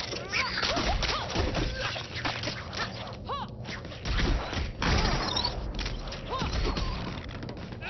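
Game figures brawl with rapid punches and clattering impacts.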